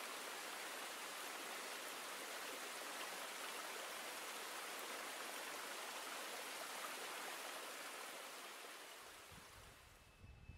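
A stream rushes steadily over rocks.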